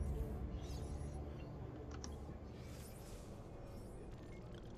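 A soft whooshing chime sounds as a game menu opens.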